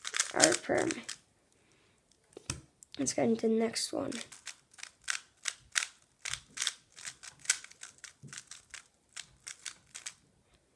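A puzzle cube clicks and clacks as it is turned quickly.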